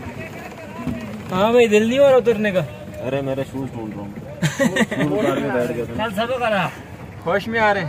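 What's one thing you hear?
Young men talk and laugh together close by.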